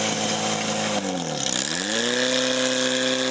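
A pump engine's pitch drops sharply and then revs back up.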